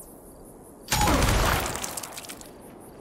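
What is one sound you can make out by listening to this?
A rifle fires a short burst close by.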